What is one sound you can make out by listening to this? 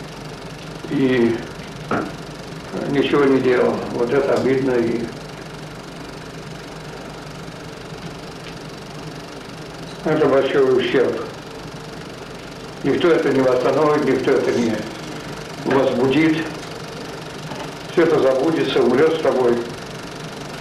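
An elderly man speaks calmly and slowly in short phrases, close by.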